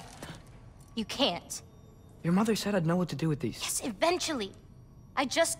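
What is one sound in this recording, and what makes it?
A young woman answers with animation, close by.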